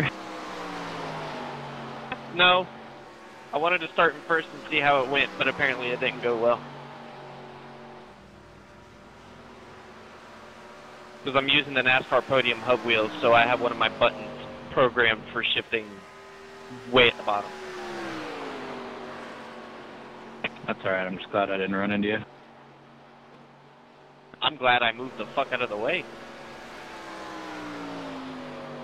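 A race car engine roars steadily, its pitch sliding slowly up and down as the car passes.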